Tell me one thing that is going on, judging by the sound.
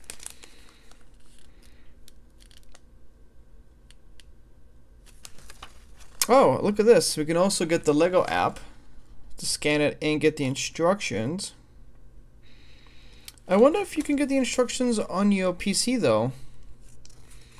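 Paper pages of a booklet turn and rustle.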